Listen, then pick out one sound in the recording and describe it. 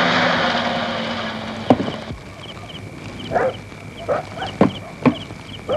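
Small fires crackle and pop.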